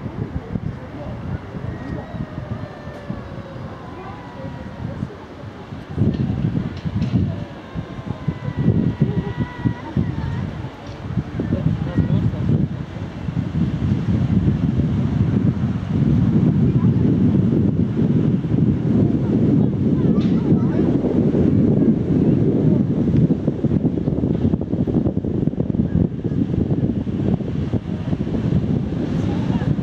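Wind blows and buffets loudly outdoors, growing stronger.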